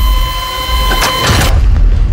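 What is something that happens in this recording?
A door handle turns and a door clicks open.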